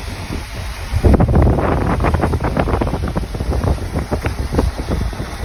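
A vehicle drives along with a low, steady road rumble.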